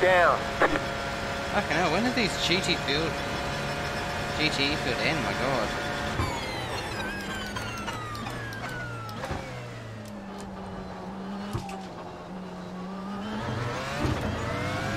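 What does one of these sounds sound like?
A racing car engine screams at high revs, then winds down as the car slows and rises again.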